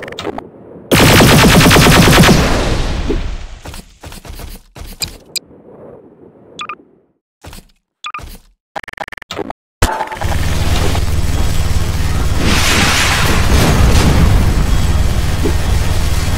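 A beam weapon fires with a loud electric crackle.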